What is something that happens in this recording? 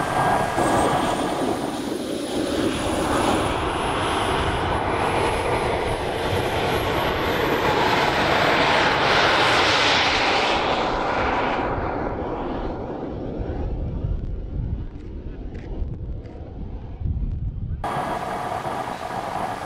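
Wind rumbles across open ground.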